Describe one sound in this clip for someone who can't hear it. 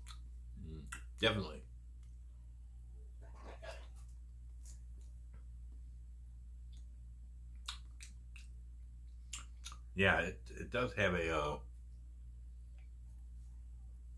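An elderly man drinks from a plastic bottle.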